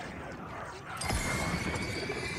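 Fireworks burst and crackle loudly.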